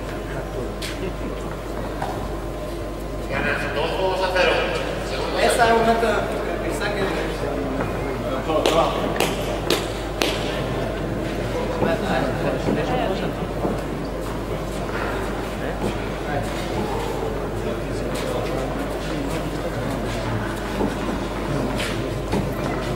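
A tennis ball is struck with a racket, knocking sharply in an echoing indoor hall.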